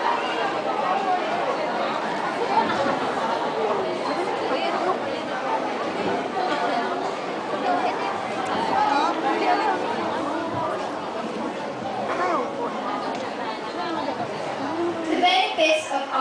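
A young woman speaks through a loudspeaker.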